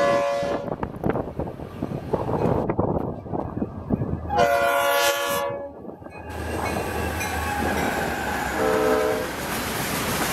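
Diesel locomotives rumble past close by.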